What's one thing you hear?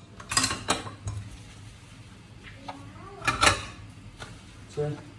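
Ceramic plates clink and clatter against each other.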